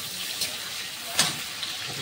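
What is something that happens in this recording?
A spatula scrapes against a metal wok.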